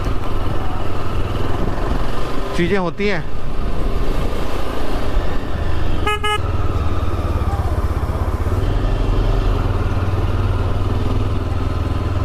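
Wind buffets past a motorcycle.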